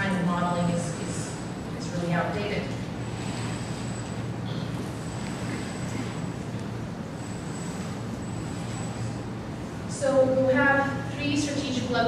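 A man speaks calmly into a microphone over loudspeakers in a large echoing hall.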